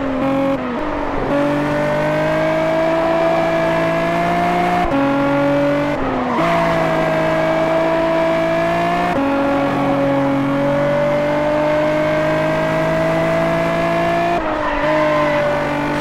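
A racing car engine roars steadily, rising in pitch through each gear and dropping briefly at each gear change.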